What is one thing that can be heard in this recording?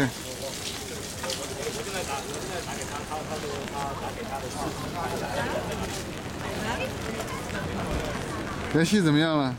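A crowd of people chatter outdoors in the background.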